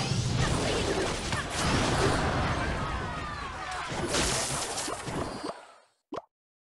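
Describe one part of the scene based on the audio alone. Upbeat game music plays.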